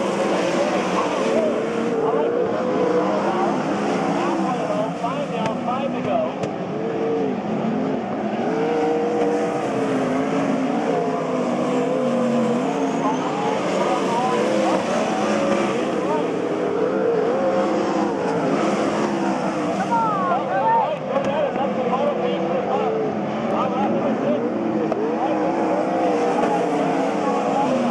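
Several race car engines roar and rev loudly.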